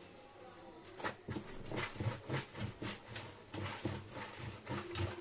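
Hands rub and splash dishes in water at a sink.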